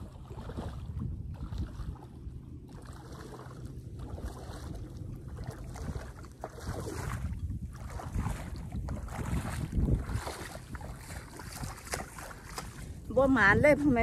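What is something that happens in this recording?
Feet splash and wade through shallow water.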